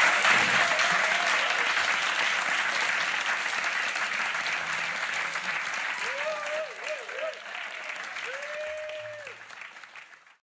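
A crowd claps and cheers indoors, slowly fading away.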